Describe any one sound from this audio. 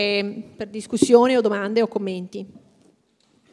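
A young woman speaks into a microphone with animation, heard through loudspeakers in a hall.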